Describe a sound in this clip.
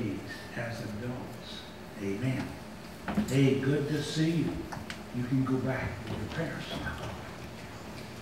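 An older man talks calmly to nearby children.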